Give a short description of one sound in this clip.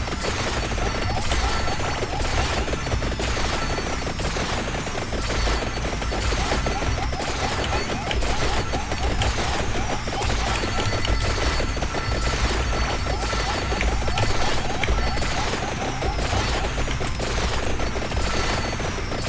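Rapid electronic game sound effects of shots and whooshes play without pause.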